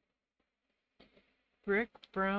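Hands pick up markers with soft clicks and taps.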